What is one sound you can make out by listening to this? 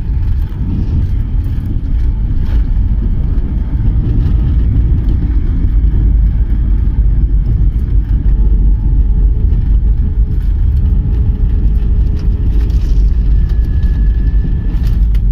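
Wheels rumble and thump over the runway.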